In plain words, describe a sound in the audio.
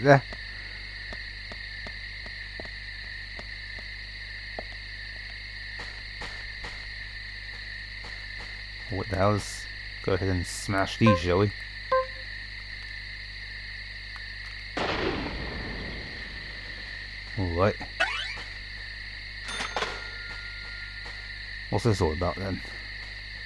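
Footsteps run over hard ground and grass.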